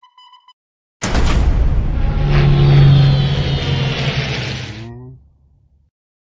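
A card game plays a heavy rumbling attack effect.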